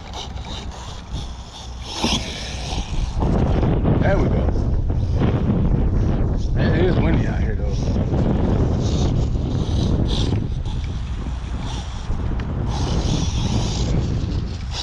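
A small remote-controlled car's motor whirs as it drives over grass.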